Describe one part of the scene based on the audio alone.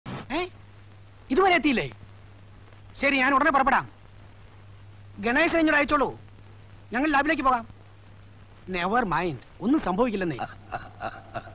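A middle-aged man speaks into a telephone in short phrases with pauses.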